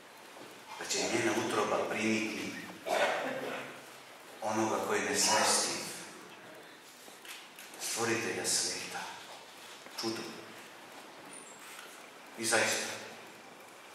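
A middle-aged man speaks calmly into a microphone in an echoing hall, pausing between phrases.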